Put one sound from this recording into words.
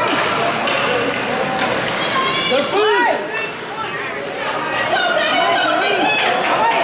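A crowd of spectators shouts and cheers in an echoing arena.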